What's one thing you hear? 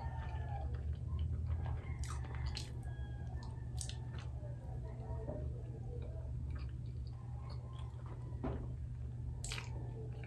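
A young woman chews crunchy food close up, with wet crackling bites.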